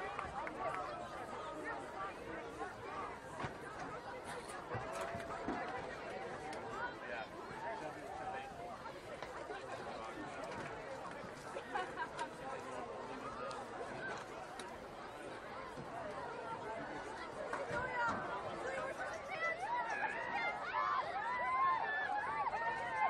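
A crowd of spectators chatters outdoors at a distance.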